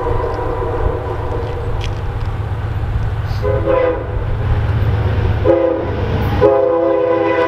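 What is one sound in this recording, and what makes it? A diesel locomotive engine rumbles as it approaches.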